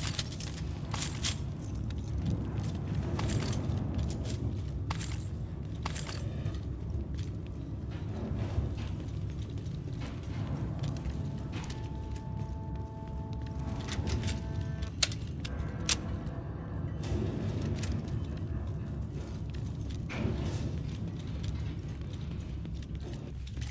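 Footsteps crunch over scattered debris.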